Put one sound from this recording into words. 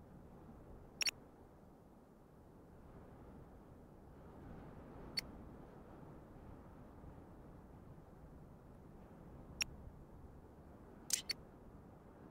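Short sharp interface clicks sound now and then.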